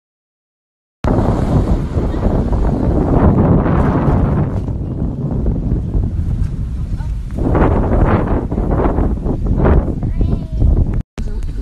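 Wind blows hard and buffets the microphone outdoors.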